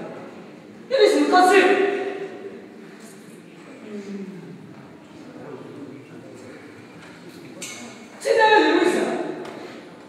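A young man shouts with animation in an echoing hall.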